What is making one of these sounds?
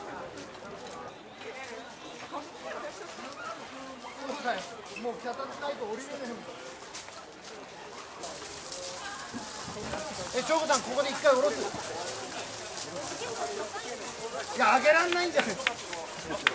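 A crowd of men chant and shout rhythmically outdoors.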